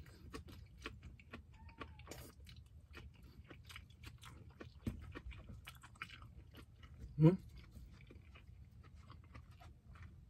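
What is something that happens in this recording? A man chews and smacks his lips loudly, close to the microphone.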